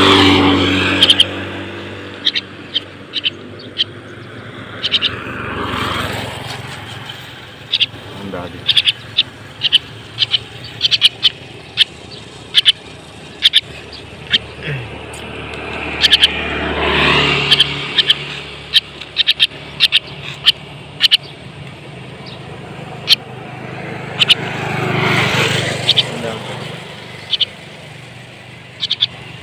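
A small bird chirps in short, sharp calls.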